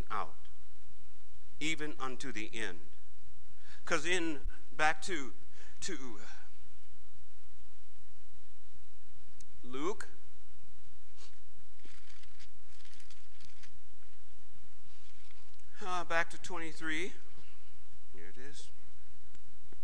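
A man speaks slowly and calmly into a microphone, with pauses, in a room with a slight echo.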